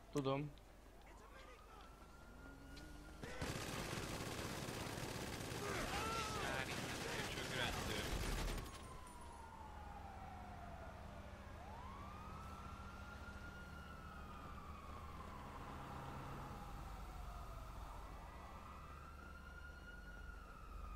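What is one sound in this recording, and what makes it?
Police sirens wail, rising and falling.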